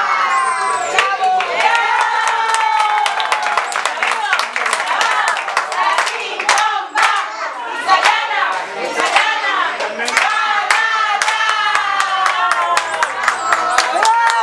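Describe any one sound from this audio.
People clap their hands in a quick rhythm.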